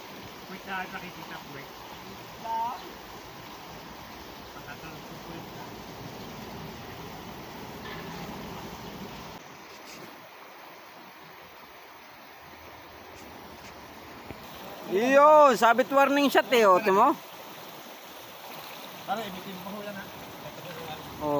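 Water splashes and churns as a man wades.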